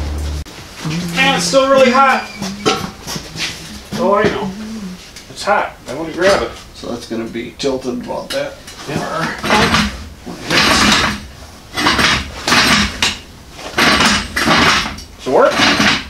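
Metal parts clank as they are handled.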